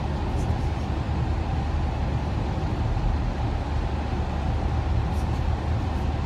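Tyres roar steadily on a road.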